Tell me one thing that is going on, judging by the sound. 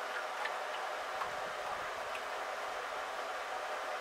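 Liquid pours and splashes into a tub.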